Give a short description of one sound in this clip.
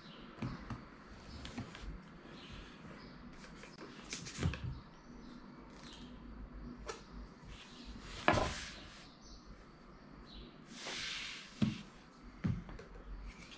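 Hands handle a cardboard box, which rustles and knocks on a table.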